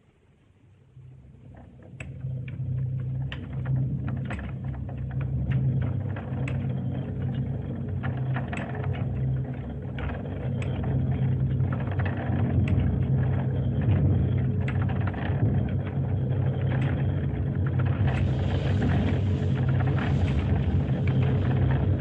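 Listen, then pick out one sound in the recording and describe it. Large machine gears grind and clank with a heavy, steady rumble.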